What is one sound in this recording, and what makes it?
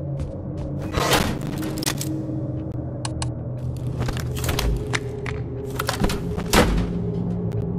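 Metal switches click sharply.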